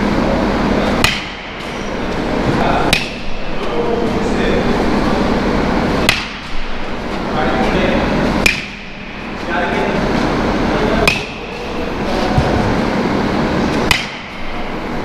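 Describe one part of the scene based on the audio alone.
A metal bat cracks sharply against a baseball, again and again, in an echoing indoor hall.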